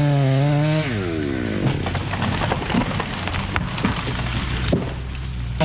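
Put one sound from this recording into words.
A falling tree crashes through branches and thuds onto the ground.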